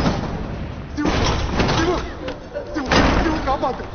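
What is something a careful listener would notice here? A crowd of women cries out loudly together.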